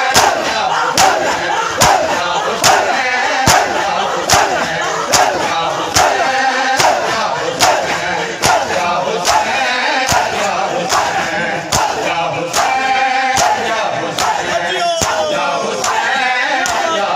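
A crowd of men chant loudly together.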